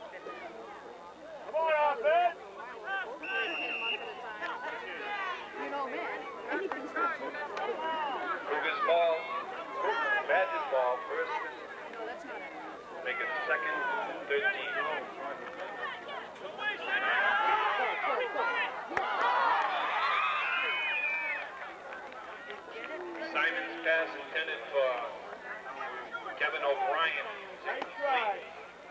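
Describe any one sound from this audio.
Young boys shout to each other on the field.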